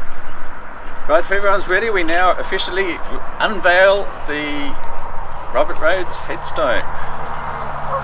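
An elderly man speaks calmly outdoors, close by.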